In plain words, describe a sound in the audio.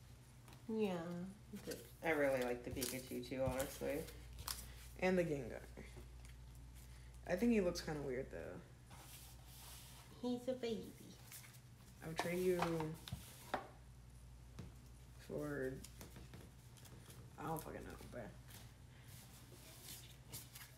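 Trading cards flick and rustle as hands sort through them.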